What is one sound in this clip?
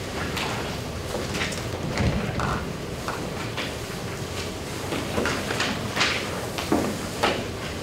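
Footsteps cross the floor.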